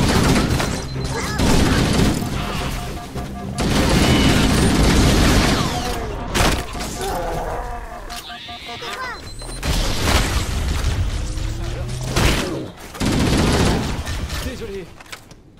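Plasma weapons fire and explosions boom loudly.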